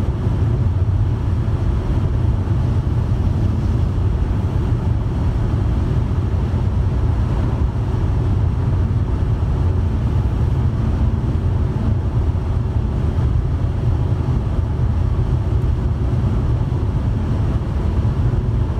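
Wind rushes steadily past a moving car.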